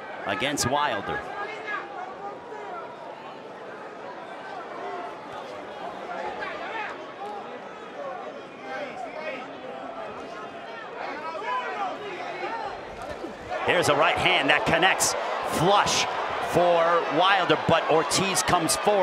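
A large crowd in a big arena cheers and roars, swelling much louder near the end.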